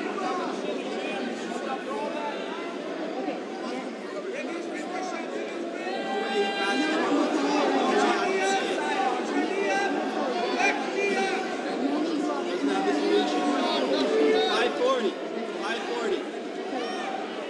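A crowd of spectators shouts and chatters in a large echoing hall.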